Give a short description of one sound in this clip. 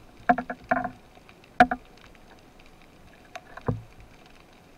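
Muffled knocks and clicks sound underwater.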